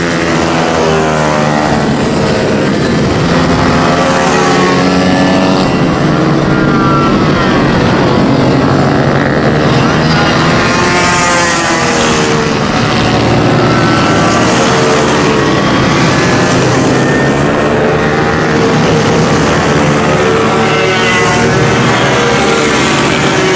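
Small motorcycle engines whine and rev loudly as they race past, rising and falling in pitch.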